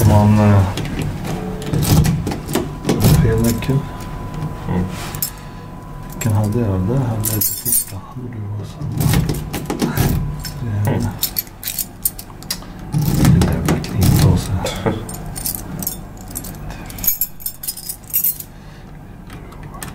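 Metal keys jangle and click against a lock.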